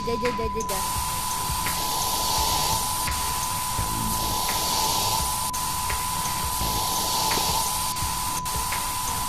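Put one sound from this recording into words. A spray tool hisses steadily.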